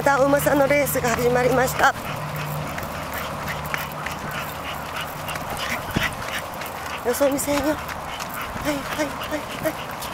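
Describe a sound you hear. Small dogs' claws patter on a concrete path.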